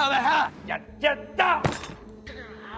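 A man yells while straining.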